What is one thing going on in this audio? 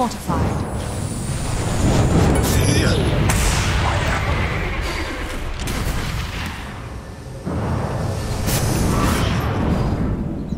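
Spells and attacks crackle and boom in a fast game battle.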